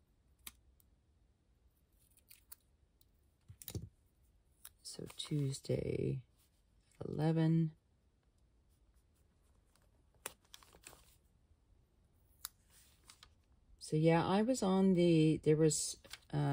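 Sticker paper crinkles softly as stickers are peeled and pressed down.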